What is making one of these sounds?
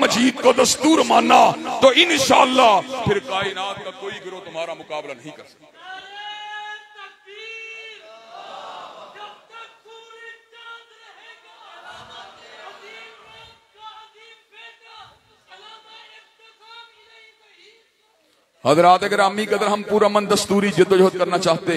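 A man preaches forcefully into a microphone through loudspeakers, his voice rising and falling.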